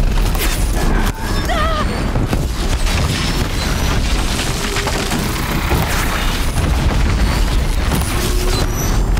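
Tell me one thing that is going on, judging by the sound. Large machines screech and clank as they stomp about.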